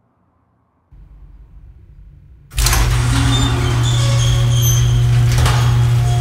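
A heavy metal door rumbles as it rolls open.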